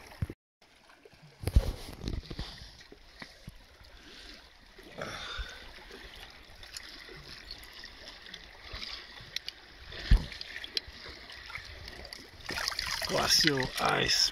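Water laps gently against rocks at the shore.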